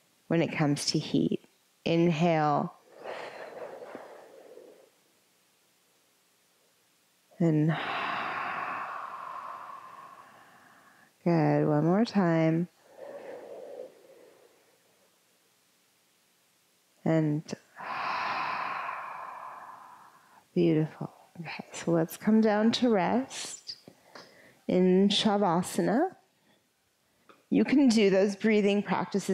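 A woman speaks calmly and slowly into a close microphone, in a room with some echo.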